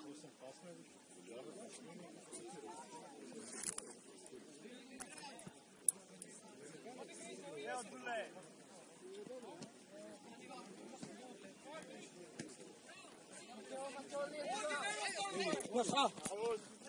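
Spectators nearby shout and call out with excitement.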